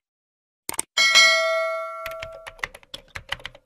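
A small bell rings brightly and fades.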